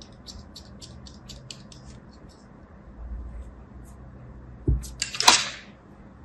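Scissors snip through soft clay with quick crisp clicks.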